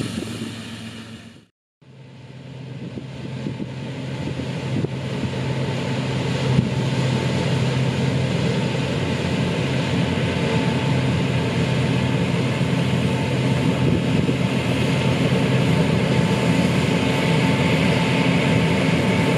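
A combine harvester's engine drones steadily and grows louder as it draws near.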